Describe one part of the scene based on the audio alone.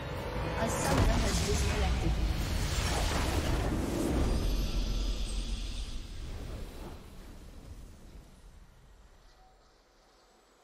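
A triumphant fanfare swells loudly, then slowly fades away.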